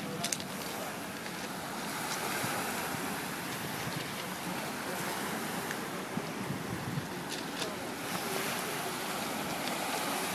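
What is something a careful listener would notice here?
Small waves wash gently onto a pebble beach.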